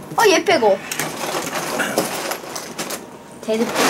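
Loose plastic bricks rattle inside a plastic tub.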